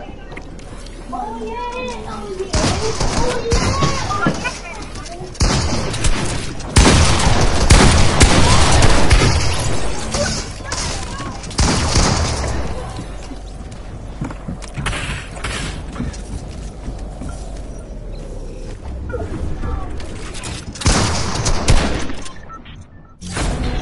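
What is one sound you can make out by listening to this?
Wooden walls are built with quick knocking thuds.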